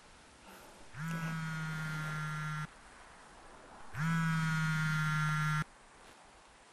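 A mobile phone rings with a steady electronic tone.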